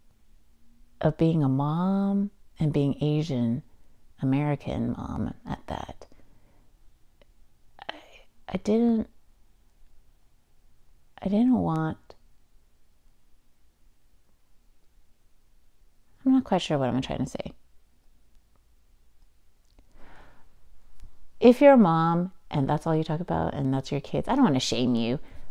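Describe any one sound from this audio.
A young woman speaks calmly into a close microphone, with pauses.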